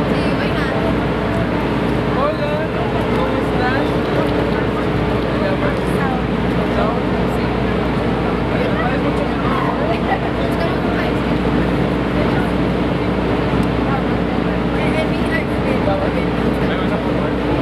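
A crowd of adults chatters nearby in a large echoing hall.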